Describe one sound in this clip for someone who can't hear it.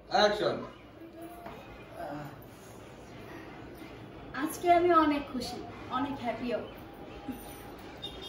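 A woman speaks close by with animation.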